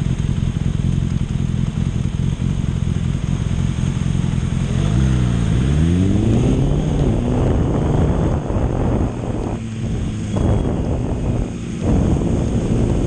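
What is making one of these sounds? A motorbike engine idles and then revs up as the bike pulls away.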